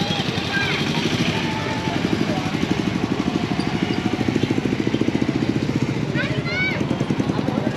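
Motorcycle engines rumble close by on a busy road.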